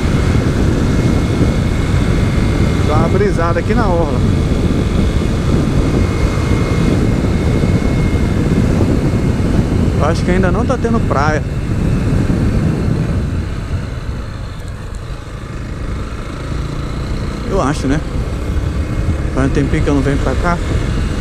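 A motorcycle engine hums and revs as it changes gear.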